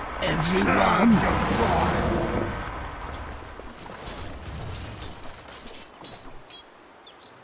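Magic blasts and clashing hits of a fantasy battle ring out in quick bursts.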